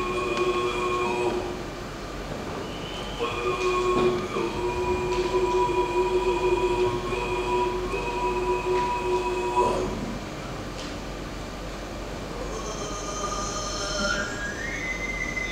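A woman sings with a strong, sustained voice.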